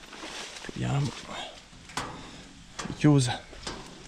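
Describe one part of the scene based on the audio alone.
A metal door handle rattles as it is tried.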